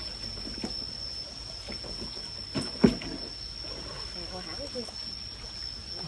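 Water splashes as fish thrash close by.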